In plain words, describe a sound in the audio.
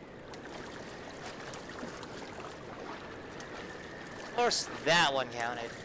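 Water splashes as a swimmer paddles.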